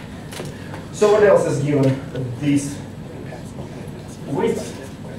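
A man speaks calmly nearby in a slightly echoing room.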